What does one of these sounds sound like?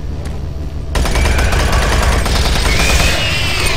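A gun fires rapidly and loudly.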